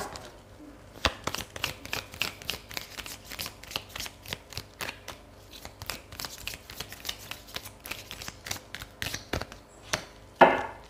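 Cards are shuffled with quick riffling clicks.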